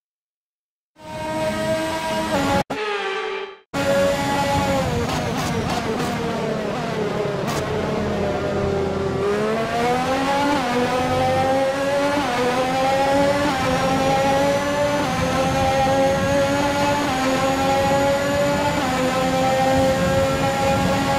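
A racing car engine screams, slowing down and then revving up through quick gear changes.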